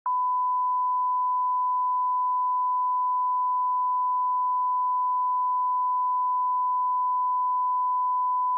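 A steady high-pitched test tone sounds without a break.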